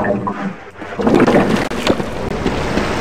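Water splashes as a swimmer breaks the surface.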